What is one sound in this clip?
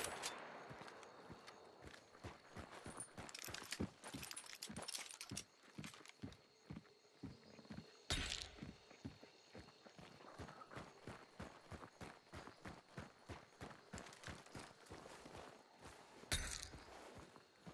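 Footsteps tread steadily on stone and gravel.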